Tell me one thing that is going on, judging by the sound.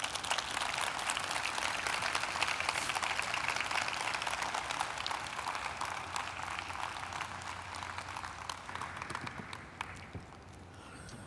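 An audience applauds in a large hall and the clapping slowly fades.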